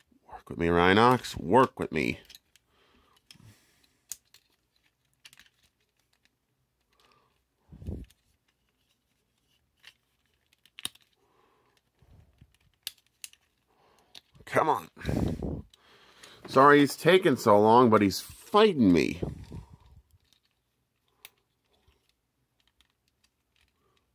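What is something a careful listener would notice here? Plastic toy parts click and rattle as they are handled.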